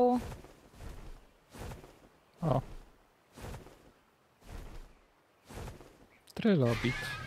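Large wings beat in steady, even flaps.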